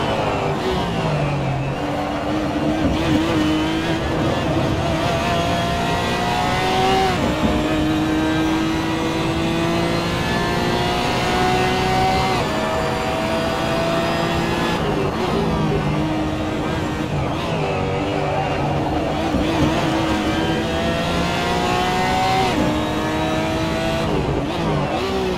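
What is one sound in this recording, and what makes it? A racing car engine roars loudly, its pitch climbing through the gears and dropping on braking.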